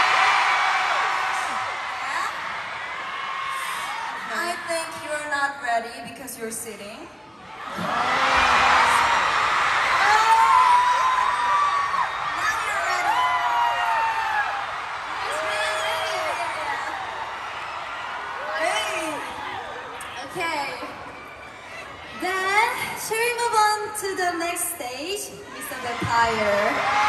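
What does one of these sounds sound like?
A young woman talks into a microphone, heard over loudspeakers in a large echoing hall.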